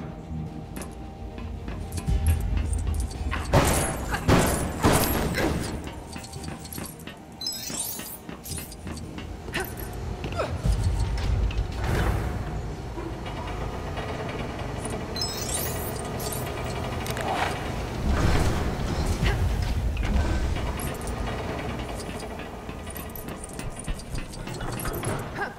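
Small coins chime as they are picked up one after another.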